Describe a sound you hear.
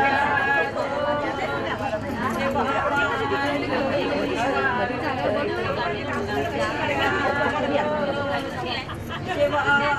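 A crowd of women chatter and talk over one another nearby.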